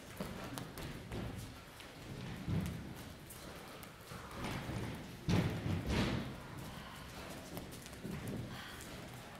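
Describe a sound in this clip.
Many footsteps shuffle and patter across a hard floor.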